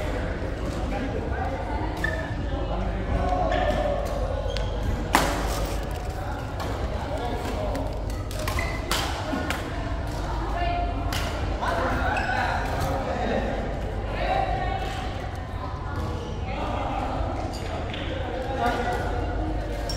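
Rackets strike a shuttlecock with sharp pops in an echoing hall.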